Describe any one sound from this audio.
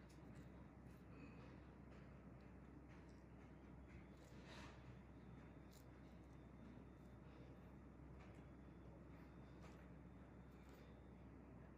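Metal tweezers tap and click softly.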